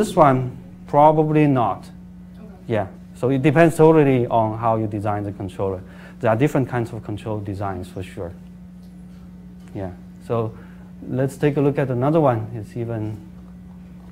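A man lectures calmly, heard through a microphone.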